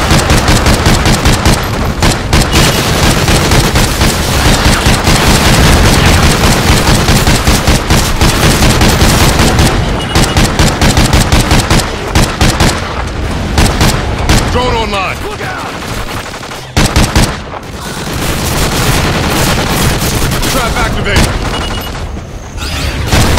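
A rifle fires rapid shots, loud and close.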